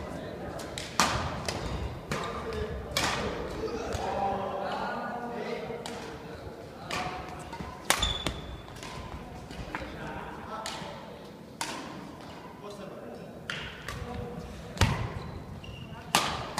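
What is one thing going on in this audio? Badminton rackets strike a shuttlecock in an echoing indoor hall.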